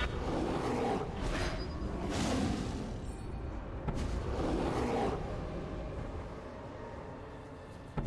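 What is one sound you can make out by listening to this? Game sound effects whoosh and crackle as a character casts spells.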